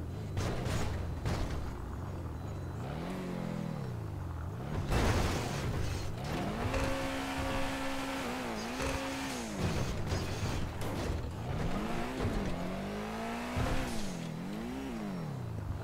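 A car engine revs up and down in rising and falling bursts.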